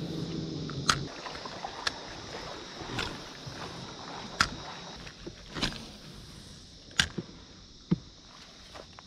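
A fish splashes and thrashes at the water's surface close by.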